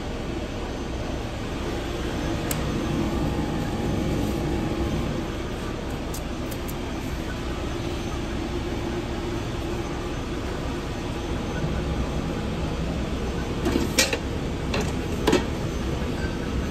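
Paper wrappers rustle.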